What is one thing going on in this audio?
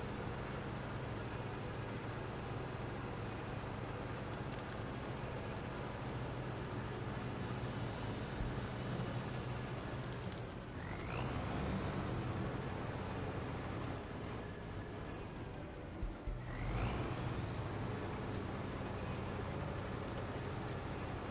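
Tyres crunch through snow and over rocks.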